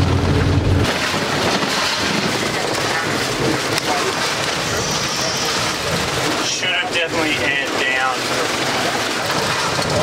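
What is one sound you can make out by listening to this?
Tyres roll over a gravel road with a constant rattling rush.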